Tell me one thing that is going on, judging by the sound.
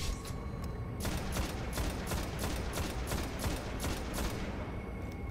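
A rifle fires a rapid string of gunshots.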